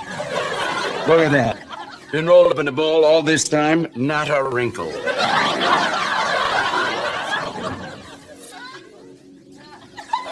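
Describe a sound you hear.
An elderly man speaks with animation.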